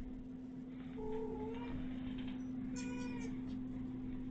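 A cat meows close by a few times.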